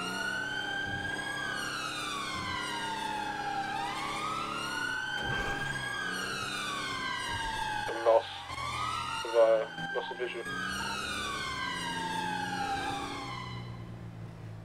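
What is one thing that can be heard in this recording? A police siren wails, rising and falling.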